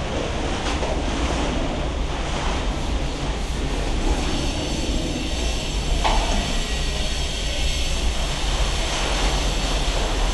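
A metal light fixture clicks and scrapes as it is fitted into a ceiling.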